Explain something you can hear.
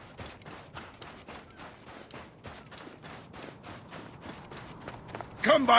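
Quick footsteps run through soft sand.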